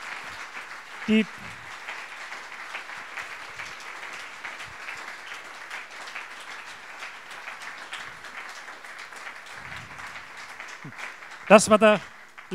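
An audience murmurs and chatters quietly in a hall.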